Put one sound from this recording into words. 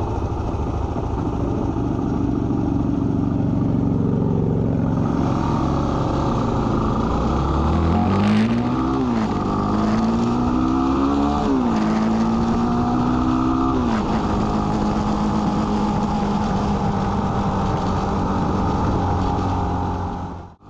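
An engine hums steadily and revs up through several gear changes.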